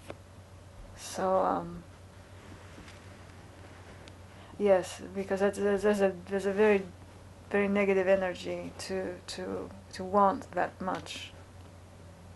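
A woman speaks quietly and calmly close to a microphone, in short bursts with pauses.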